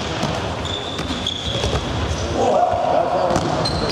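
A ball thuds off a player's foot.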